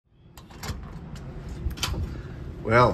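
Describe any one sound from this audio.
A metal door latch clicks and rattles.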